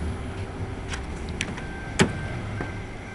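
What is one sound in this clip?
A car door latch clicks and the door opens.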